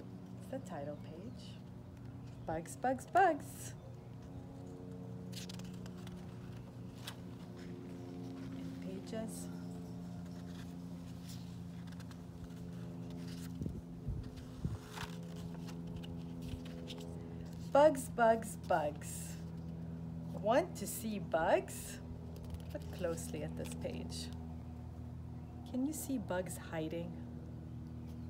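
A young woman reads aloud with animation, close by.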